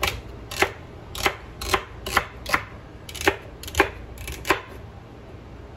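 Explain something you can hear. A knife chops on a wooden board in quick strokes.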